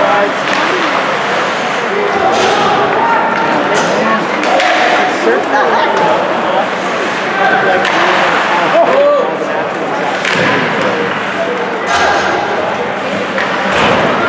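A crowd of spectators chatters and shouts in a large echoing arena.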